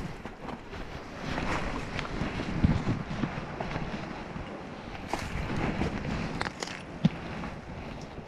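Footsteps crunch on dry leaves and loose stones.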